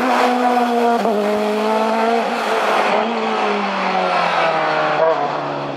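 A racing car engine drops in pitch as the driver shifts gears.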